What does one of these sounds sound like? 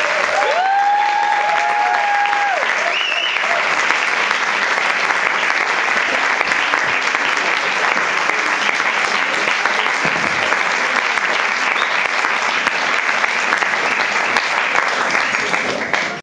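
Loud applause fills a room.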